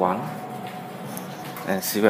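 An elevator button clicks.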